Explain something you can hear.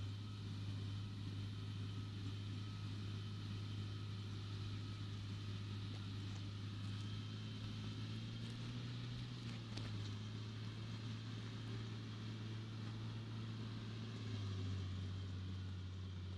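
A tractor engine drones steadily in the distance across an open field.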